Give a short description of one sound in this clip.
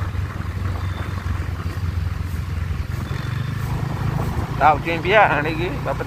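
A truck engine rumbles nearby as the truck drives past.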